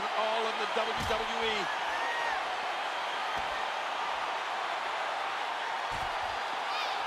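A body slams hard onto the floor.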